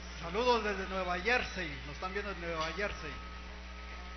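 A man speaks loudly through a microphone.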